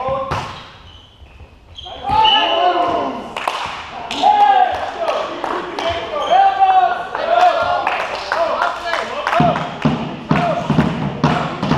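Young men call out to each other during play.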